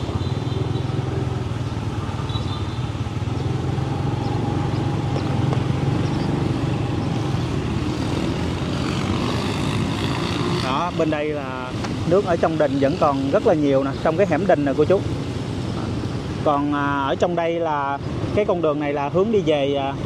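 Motorbikes hum and rumble past on a wet road.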